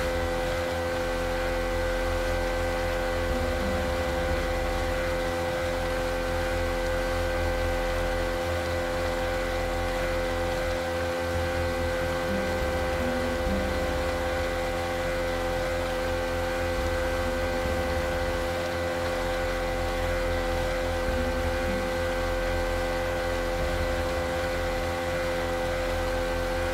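A boat engine drones steadily.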